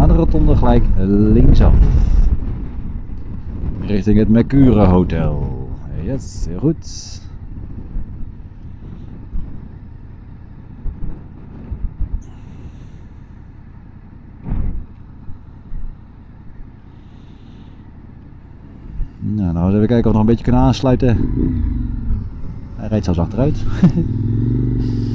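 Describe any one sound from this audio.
A motorcycle engine revs up and down, close by.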